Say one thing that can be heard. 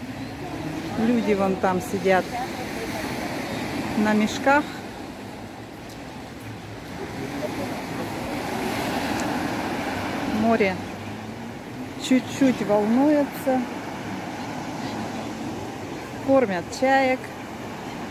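Seagulls cry loudly nearby.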